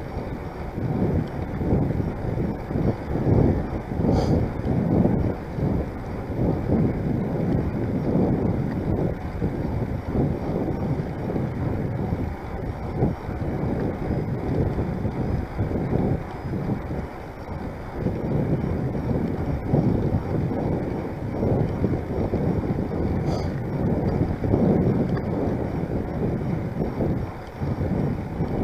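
Bicycle tyres roll steadily on a paved path.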